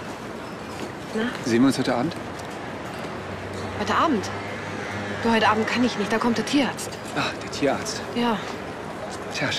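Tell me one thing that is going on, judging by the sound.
A young woman speaks earnestly up close.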